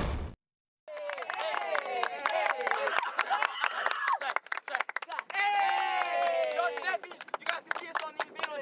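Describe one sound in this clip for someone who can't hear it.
Young boys sing and chant together loudly.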